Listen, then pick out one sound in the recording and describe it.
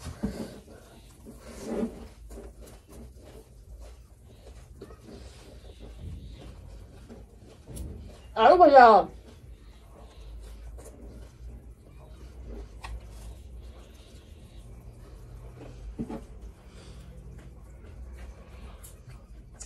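A young woman chews food noisily.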